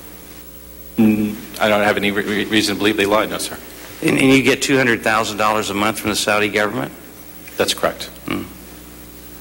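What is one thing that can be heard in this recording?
A younger man speaks calmly into a microphone.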